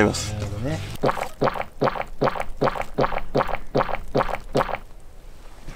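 A man gulps down a drink in quick, steady swallows.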